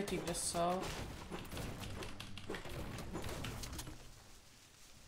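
Quick footsteps patter in a video game.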